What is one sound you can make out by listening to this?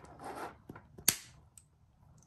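Beads click softly against each other.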